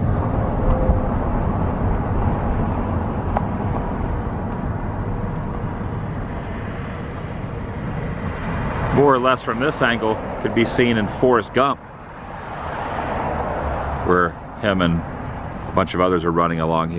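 A car drives along a road with a steady low rumble of tyres.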